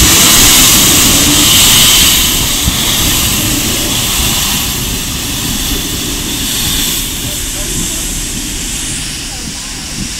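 A steam locomotive hisses loudly as it passes close by.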